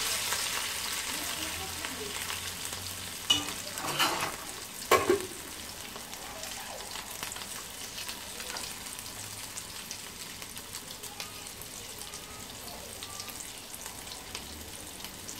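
Oil sizzles and crackles steadily in a frying pan.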